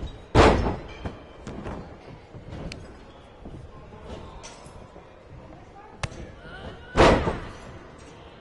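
Heavy bodies slam onto a wrestling ring mat with loud booming thuds.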